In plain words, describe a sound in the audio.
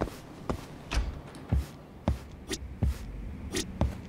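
A door opens and closes.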